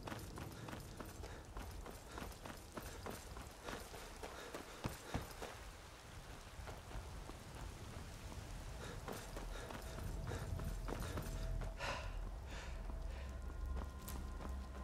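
Footsteps crunch over stone and gravel at a steady walking pace.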